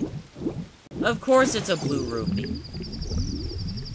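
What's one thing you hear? A game character dives under water with a splash.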